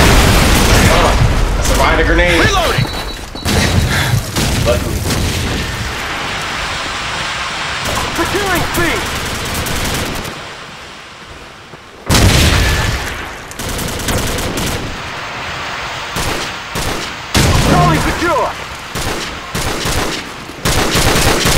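Rapid gunfire crackles and bangs loudly.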